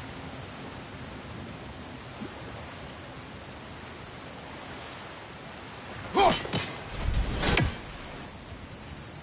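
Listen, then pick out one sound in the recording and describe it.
Water splashes steadily down a waterfall.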